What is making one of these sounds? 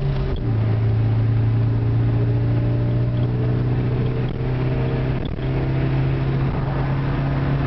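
A car engine hums steadily from inside the cabin, shifting pitch now and then as gears change.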